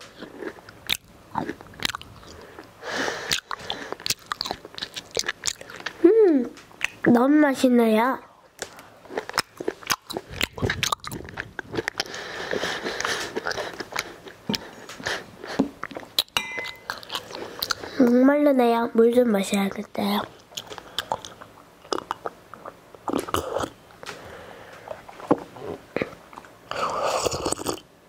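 A young girl whispers softly and closely into a microphone.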